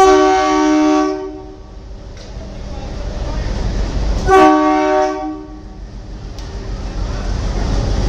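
Train wheels clatter over the rails of a steel bridge.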